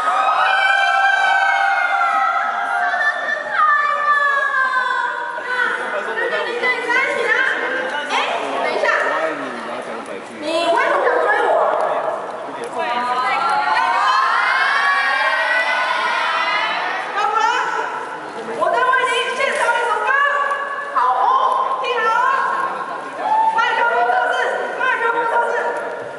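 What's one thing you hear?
A young woman sings through a microphone and loudspeakers.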